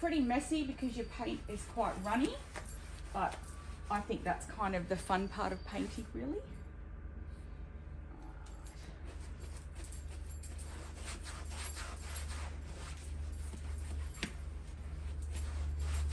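A sponge scrubs softly against fabric.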